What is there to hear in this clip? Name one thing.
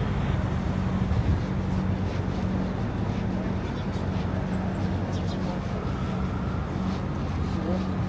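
City traffic rumbles steadily along a busy street outdoors.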